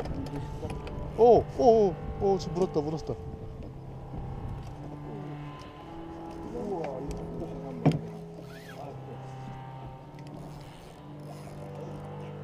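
A fishing reel whirs as line is reeled in.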